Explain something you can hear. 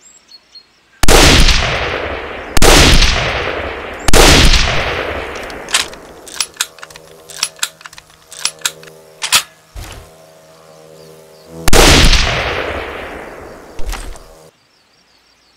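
A hunting rifle fires, echoing across open country.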